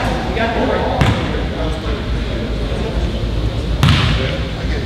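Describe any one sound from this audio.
A basketball thumps on a hard floor in an echoing hall.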